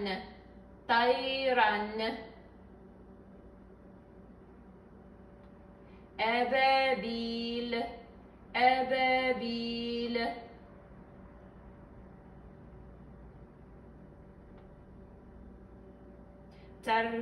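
A woman chants slowly in a melodic, drawn-out voice close by, with pauses between phrases.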